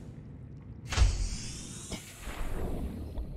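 Water splashes as a diver enters the sea.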